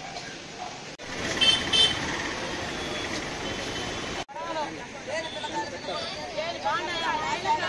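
A crowd of women talk loudly and excitedly outdoors.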